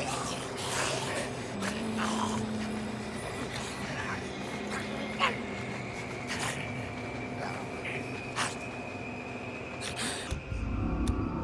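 Footsteps pad softly on a wet surface.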